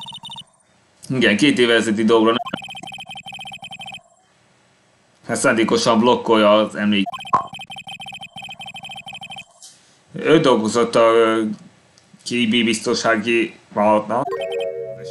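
A young man reads aloud with animation, close to a microphone.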